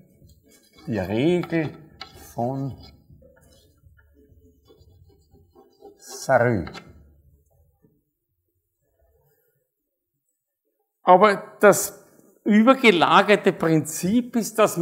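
A man speaks calmly and clearly, as if lecturing, in a room with some echo.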